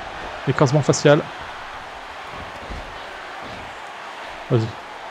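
A crowd cheers steadily in a large arena.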